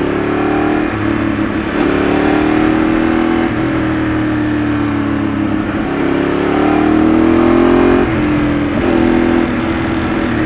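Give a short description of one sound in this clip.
Wind rushes past the rider at speed.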